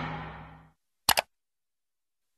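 A mouse button clicks twice quickly.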